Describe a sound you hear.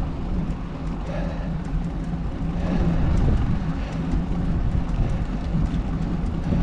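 Wind blows and rumbles steadily outdoors.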